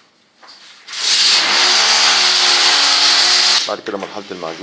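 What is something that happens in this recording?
A tool scrapes loudly against a plastered wall.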